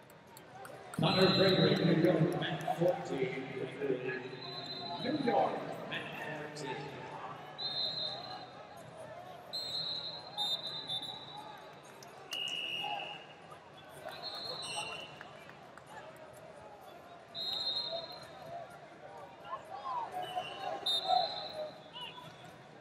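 Shoes squeak on a mat.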